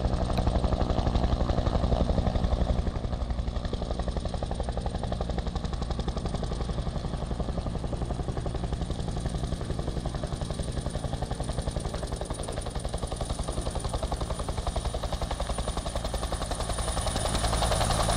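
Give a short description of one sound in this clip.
A helicopter's rotor thumps rapidly and steadily overhead.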